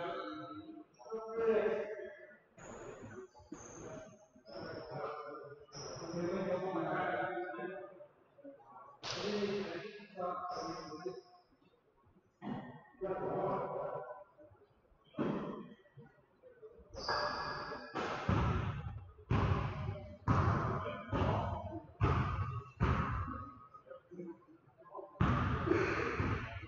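A man talks calmly nearby in a large echoing hall.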